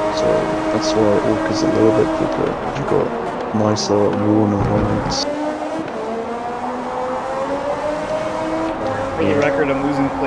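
A racing car engine drops in pitch as the car brakes and shifts down, then climbs again.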